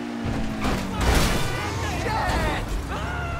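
A car crashes into another car with a loud thud.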